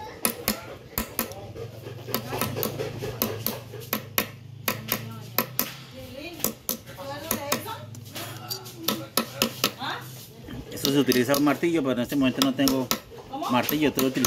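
A hammer taps repeatedly on a wooden block.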